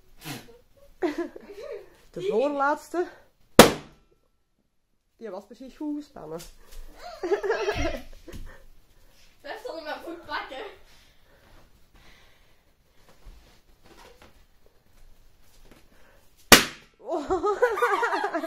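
A young girl shrieks and laughs excitedly close by.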